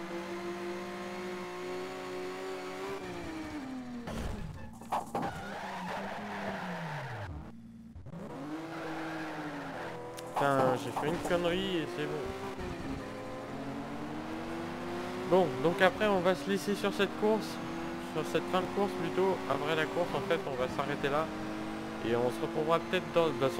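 A car engine roars and revs up and down as it races.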